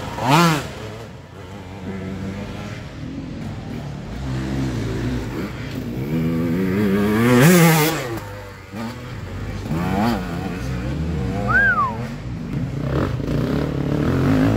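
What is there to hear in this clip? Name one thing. An enduro motorcycle revs hard, its engine rising and falling through the gears.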